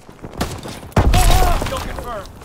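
A grenade explodes with a loud, rumbling boom.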